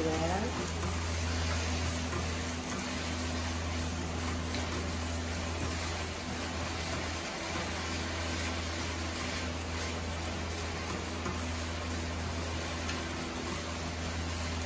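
A wooden spatula scrapes and stirs against a pan.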